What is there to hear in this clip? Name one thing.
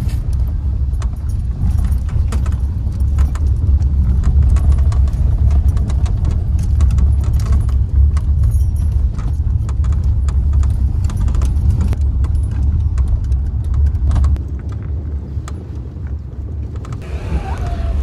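Wind buffets loudly through an open car window.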